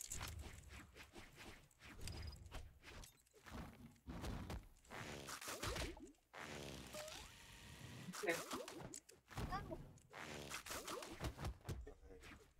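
Cartoonish fighting hits land with sharp thuds and whooshes.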